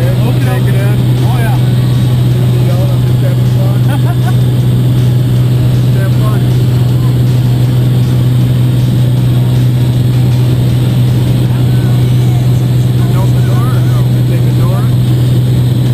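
An aircraft engine drones loudly and steadily inside a cabin.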